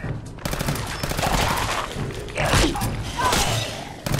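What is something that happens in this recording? A creature snarls and growls close by.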